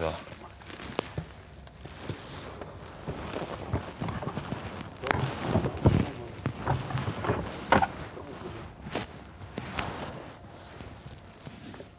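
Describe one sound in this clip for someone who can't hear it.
Clothing rustles and brushes close by.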